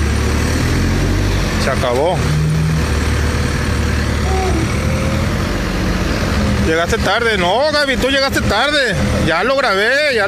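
A heavy excavator engine rumbles steadily nearby.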